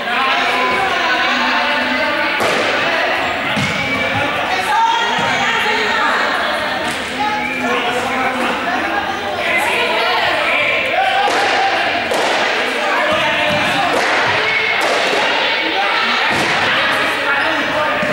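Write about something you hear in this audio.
Shoes squeak and thud on a hard floor.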